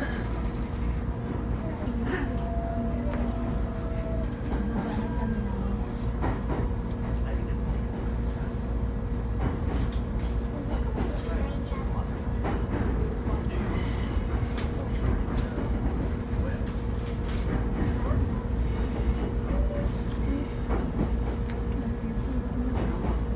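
A train carriage rattles and clatters.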